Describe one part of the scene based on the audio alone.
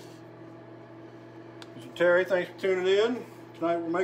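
A rubber glove snaps against a wrist.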